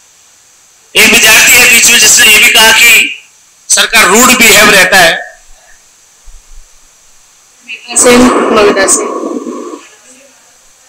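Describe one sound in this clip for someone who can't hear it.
A woman speaks calmly over an online call, heard through a loudspeaker.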